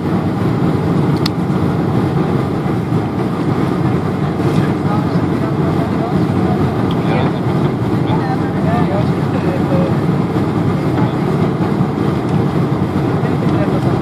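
Jet engines roar steadily.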